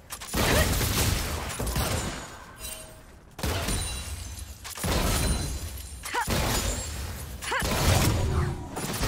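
Game sound effects of fighting, spell blasts and hits, play loudly and steadily.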